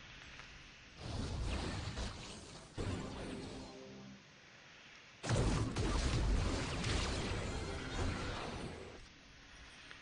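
Magical blasts crackle and boom in a fast fight.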